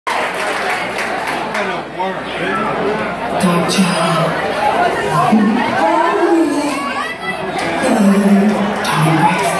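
Many people chatter and shout loudly close by.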